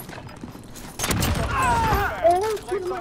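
Gunshots from a video game bang in quick bursts.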